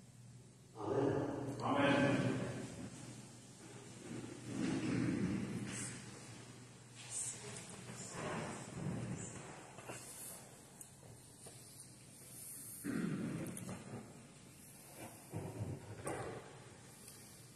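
An elderly man speaks calmly in a large echoing hall.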